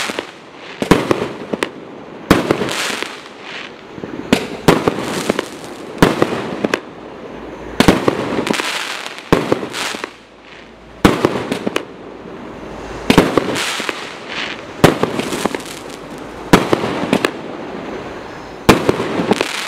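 Fireworks crackle and sizzle after each burst.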